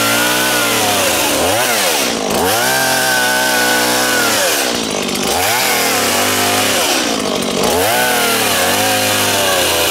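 A small chainsaw whines loudly, revving up and down as it cuts through a palm trunk.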